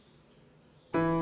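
A piano note sounds.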